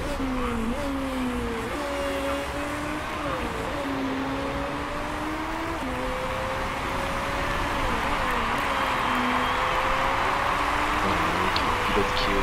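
Racing car engines whine steadily, rising and dropping in pitch as gears change.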